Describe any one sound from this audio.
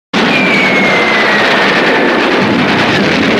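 A falling bomb whistles with a falling pitch.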